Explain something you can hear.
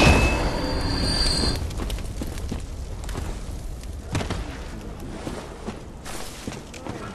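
Footsteps crunch softly on dirt and leaves.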